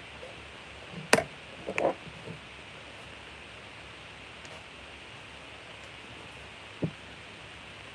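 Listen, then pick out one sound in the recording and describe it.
A glass jug knocks down onto a hard surface.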